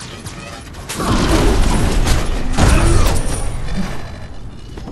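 Fiery magical blasts roar and crackle in a fight.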